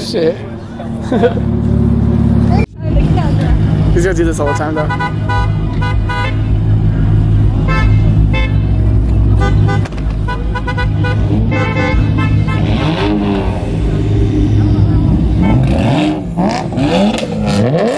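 Car engines rev up and down sharply.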